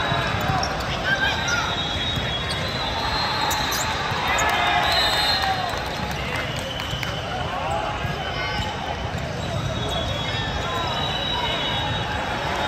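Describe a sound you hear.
Young men talk and shout across a large echoing hall.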